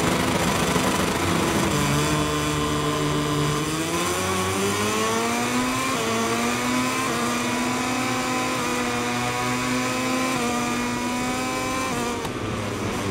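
Racing motorcycle engines roar and rev, rising in pitch as they accelerate.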